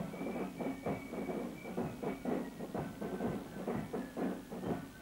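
Snare drums beat a steady marching rhythm.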